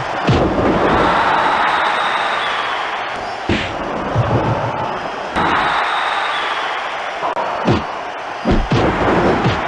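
Bodies slam with heavy thuds onto a wrestling ring.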